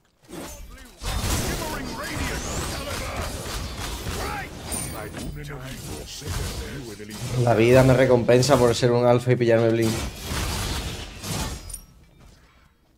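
Swords clash and magic blasts burst in a game's fight.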